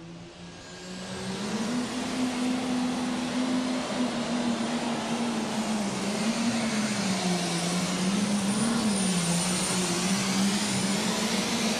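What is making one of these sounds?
A tractor engine roars loudly at full power, its pitch wavering.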